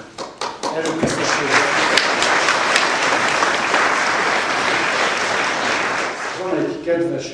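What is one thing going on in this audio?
People applaud.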